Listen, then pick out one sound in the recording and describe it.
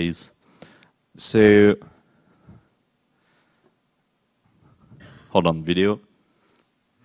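A man speaks into a microphone over loudspeakers in a hall, in short bursts with long pauses.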